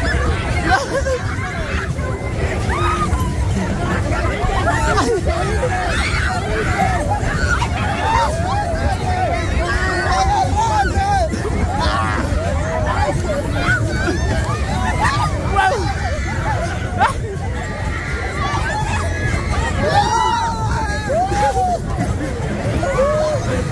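Young men shout and laugh close by.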